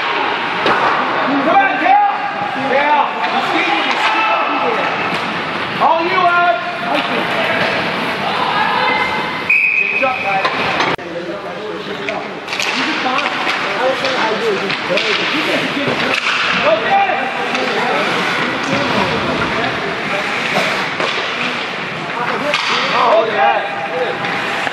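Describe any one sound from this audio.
Young men shout across an echoing rink.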